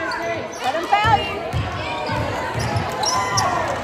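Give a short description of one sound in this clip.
A basketball bounces with dull, rhythmic thuds.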